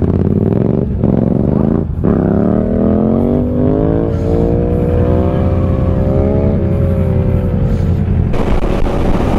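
A motorcycle engine revs up and rises in pitch as it pulls away.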